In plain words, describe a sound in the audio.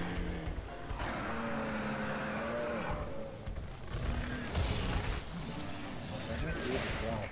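A large beast roars.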